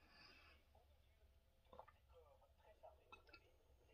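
A middle-aged woman sips a drink from a can.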